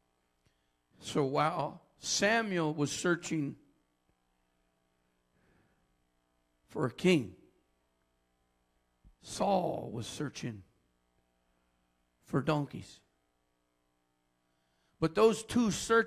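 A man preaches with animation into a microphone, in short bursts with pauses.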